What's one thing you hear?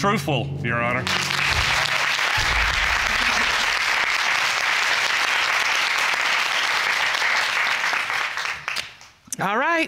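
A large audience applauds and cheers.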